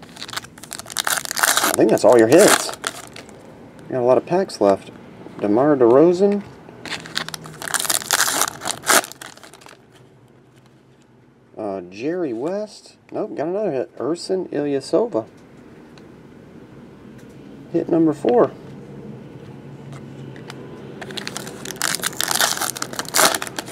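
Foil wrappers crinkle and rip loudly.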